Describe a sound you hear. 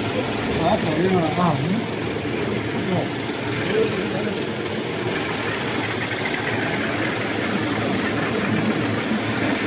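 A machine hums and rattles steadily.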